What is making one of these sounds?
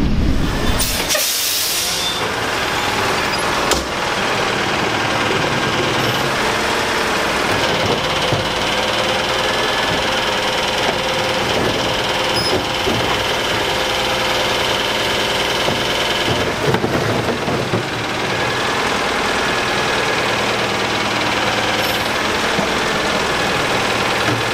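A garbage truck's engine idles steadily nearby.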